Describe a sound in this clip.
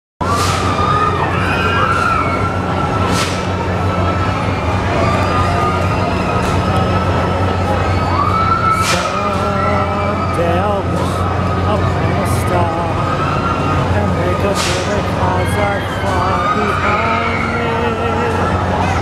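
Riders on a swing ride scream in the distance.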